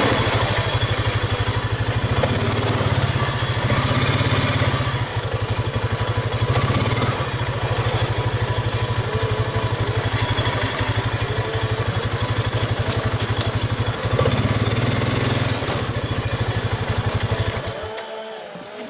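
An all-terrain vehicle engine idles with a steady throbbing rumble, then cuts off.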